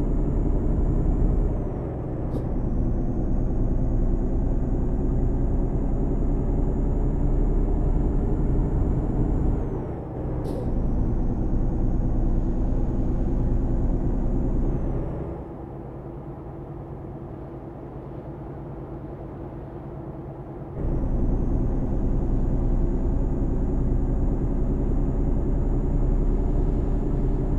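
A truck engine drones steadily while driving, dropping quieter for a few seconds before coming back up.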